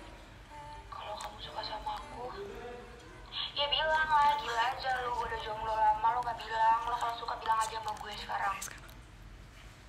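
A young woman sings close to the microphone.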